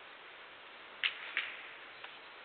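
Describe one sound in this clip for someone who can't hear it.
Pool balls clack together as they are racked.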